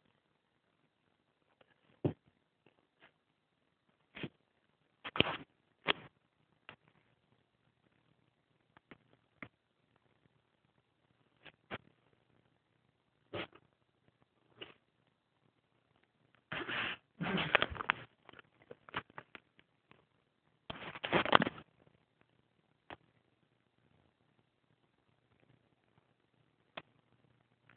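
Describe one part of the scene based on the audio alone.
A young man breathes heavily in his sleep, close by.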